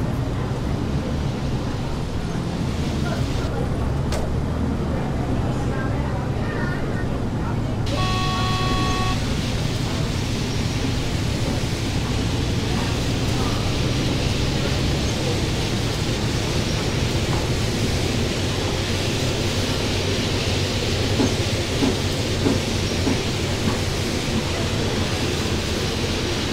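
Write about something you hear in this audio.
A bus engine hums steadily as the bus drives.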